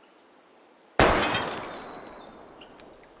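A gunshot bangs loudly and echoes away.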